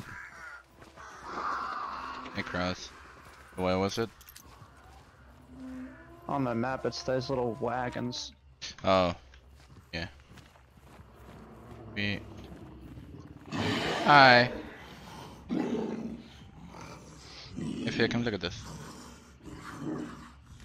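Footsteps tread on grass and dirt.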